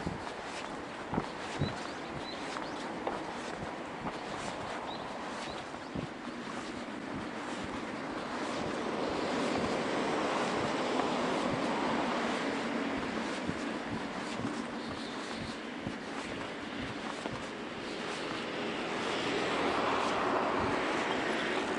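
Wind rushes over a microphone outdoors.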